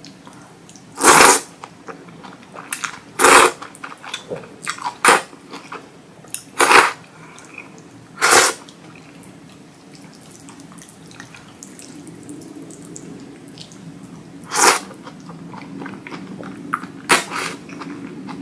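A young woman slurps noodles loudly, close to the microphone.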